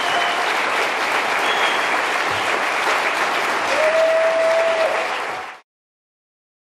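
A large audience applauds loudly in an echoing hall.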